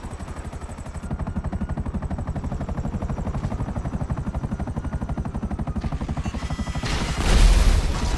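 A jet engine roars.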